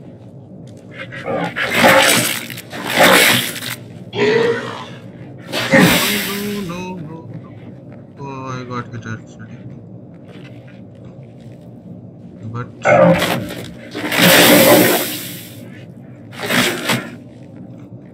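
Heavy blows thud and squelch into flesh.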